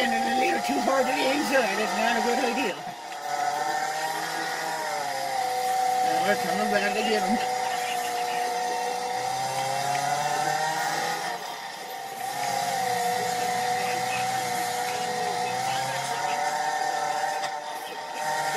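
A racing car engine drones and revs, heard through small speakers.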